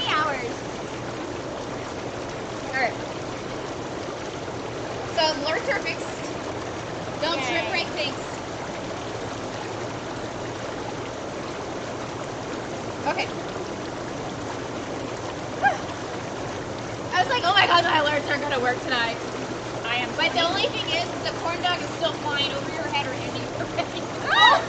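Young women talk and laugh nearby.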